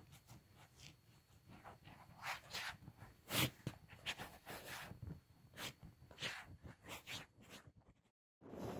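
Cloth rustles and brushes right against the microphone.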